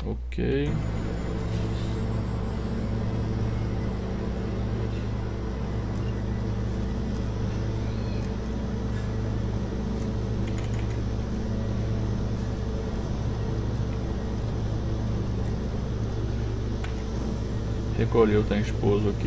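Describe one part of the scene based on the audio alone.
Aircraft engines drone steadily during a takeoff roll.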